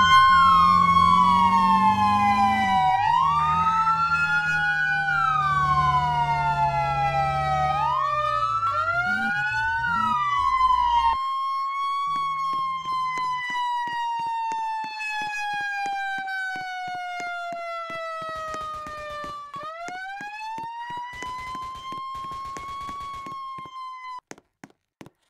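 A fire engine siren wails, rising and falling.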